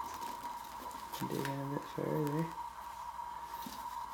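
A metal tin lid clinks as it is lifted off.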